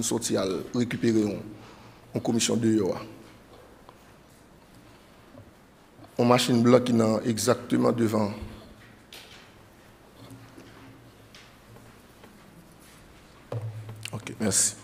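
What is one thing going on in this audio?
A man speaks calmly into a microphone in pauses, heard through a loudspeaker in an echoing hall.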